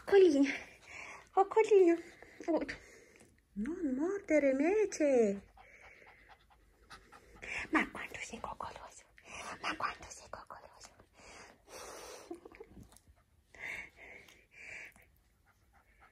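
A hand rubs through a puppy's fur with a soft rustle.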